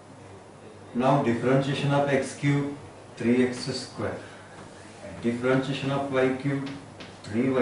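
An older man speaks calmly and clearly into a nearby microphone, explaining.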